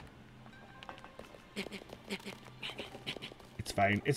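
Footsteps patter quickly on wood.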